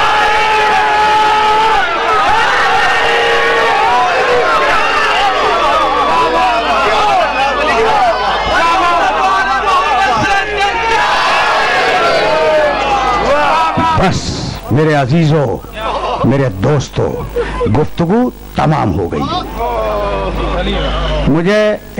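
An elderly man speaks with feeling into a microphone, heard through loudspeakers.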